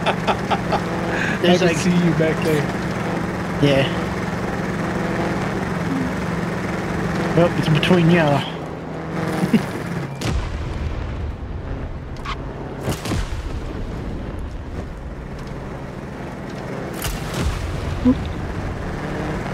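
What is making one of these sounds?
A racing car engine hums steadily, then drops to a low rumble.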